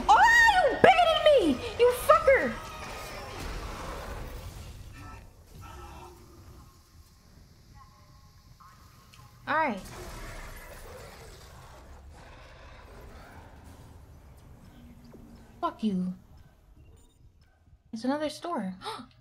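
A young woman exclaims and talks with animation through a microphone.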